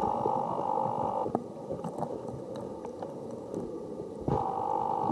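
Water murmurs and crackles softly, heard from underwater.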